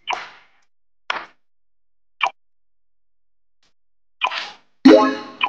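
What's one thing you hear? Short game interface sounds chime as menu buttons are pressed.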